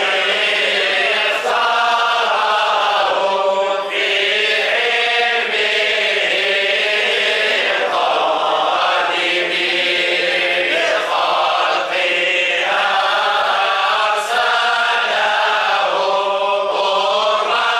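A group of men chant together in unison, in a small echoing room.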